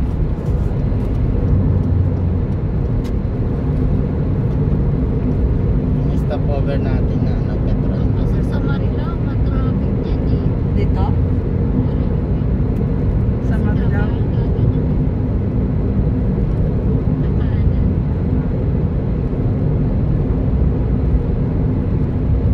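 A car engine hums steadily and tyres roar on the road from inside the car.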